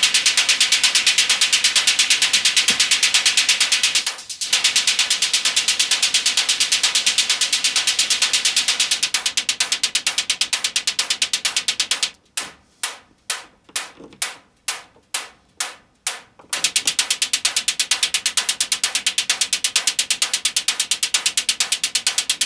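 A synthesizer plays a fast, steady pulsing electronic rhythm that briefly drops out and comes back.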